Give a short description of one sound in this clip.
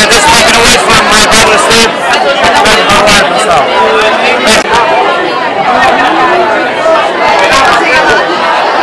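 A crowd chatters loudly in the background.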